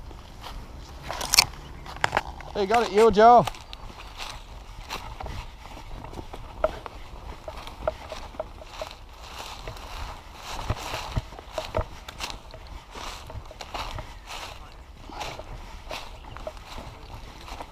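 Leafy branches rustle and brush past.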